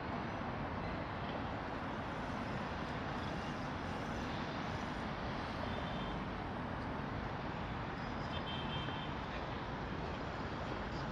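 Traffic rumbles steadily along a city street outdoors.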